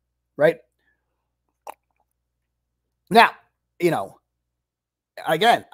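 A man speaks in short bursts, close to a microphone.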